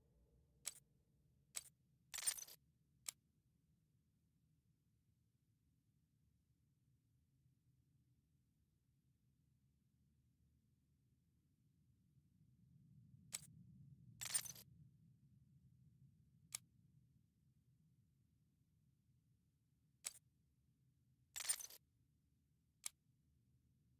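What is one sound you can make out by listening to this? Short game menu clicks and swooshes sound as options open and close.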